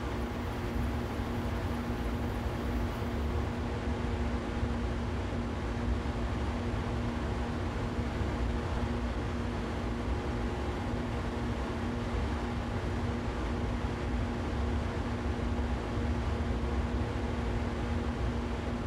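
Train wheels rumble and clatter over the track.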